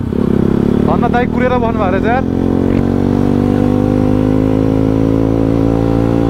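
A motorcycle engine hums steadily up close as the bike rides along.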